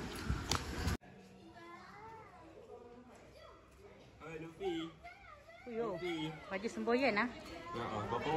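A teenage boy speaks close by.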